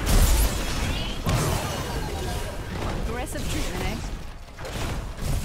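Weapon blows clash and thud.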